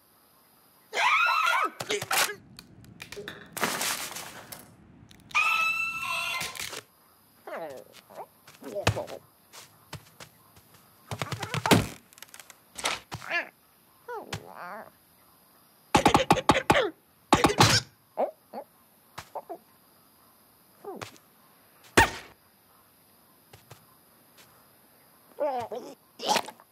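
A cartoon bird squawks and shrieks in alarm.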